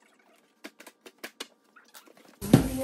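Scissors snip through packing tape.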